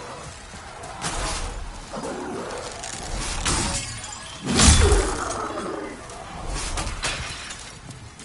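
A sword slashes and strikes with heavy impacts.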